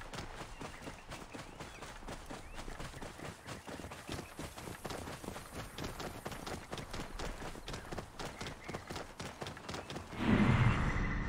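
Hooves clop rhythmically as a horse trots along a dirt path.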